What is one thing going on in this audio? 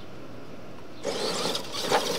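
Small remote-control trucks roll over loose dirt.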